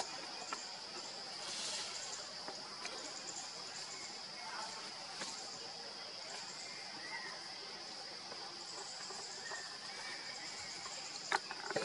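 Leaves and branches rustle softly as monkeys shift in a tree.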